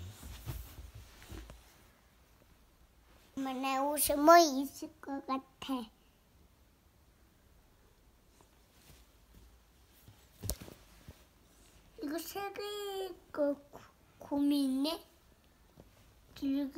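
A young girl speaks and sings playfully close by.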